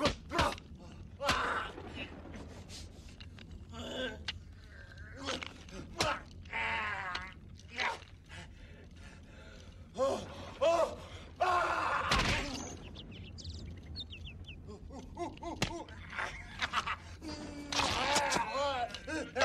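A man screams and groans in struggle, close by.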